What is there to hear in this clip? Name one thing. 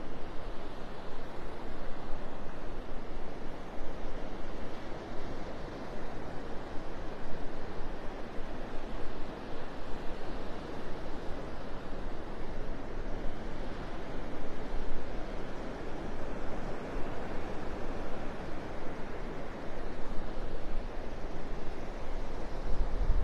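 Small waves wash steadily onto the shore.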